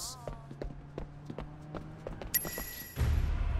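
Footsteps fall steadily on a hard floor.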